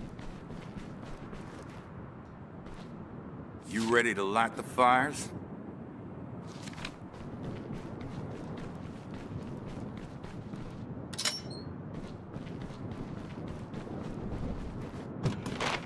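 Footsteps crunch on the ground.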